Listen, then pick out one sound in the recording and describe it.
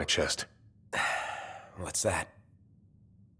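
A young man asks a short question.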